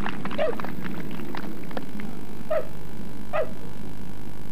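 A dog yelps a few times nearby.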